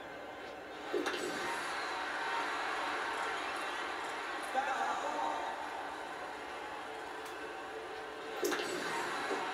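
A bat cracks against a ball through a television speaker.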